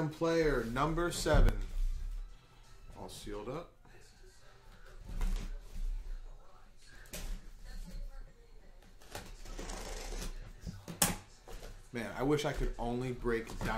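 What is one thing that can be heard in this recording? A cardboard box scrapes and thumps on a table.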